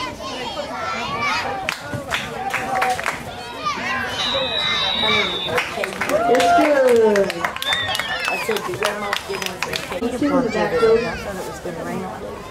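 Spectators nearby shout and cheer with excitement.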